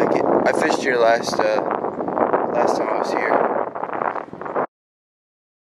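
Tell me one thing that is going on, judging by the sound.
A young man talks close to a microphone outdoors.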